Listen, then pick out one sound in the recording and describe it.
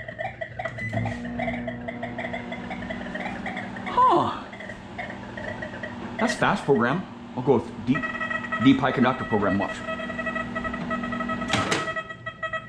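A microwave oven hums as it runs.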